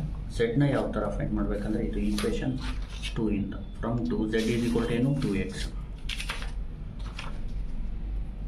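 A sheet of paper rustles as it is handled.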